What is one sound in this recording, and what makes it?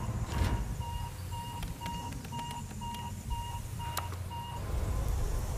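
A control panel beeps in a quick, even series.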